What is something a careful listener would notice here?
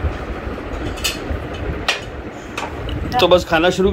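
Glasses and plates clink.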